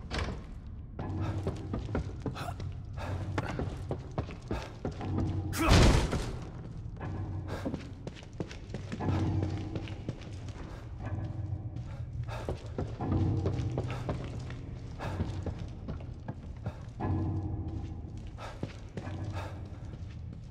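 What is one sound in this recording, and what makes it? Footsteps thud on wooden floors and stairs.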